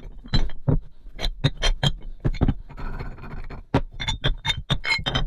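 Metal weight plates clank and clink against each other.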